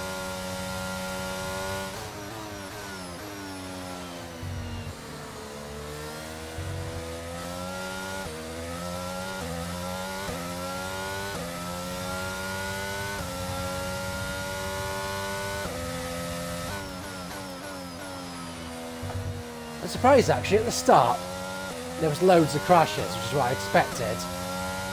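A racing car engine whines, rising and falling in pitch as it shifts gears.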